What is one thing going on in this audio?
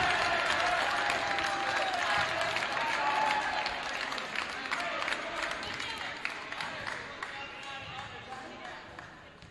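A crowd cheers loudly in a large echoing hall, then slowly quiets down.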